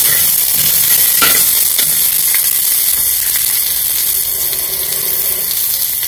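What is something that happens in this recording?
Food sizzles in hot oil.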